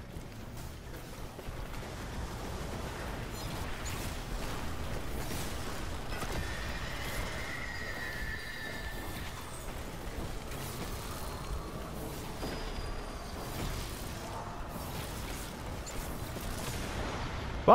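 Rapid gunfire crackles and bursts in a video game.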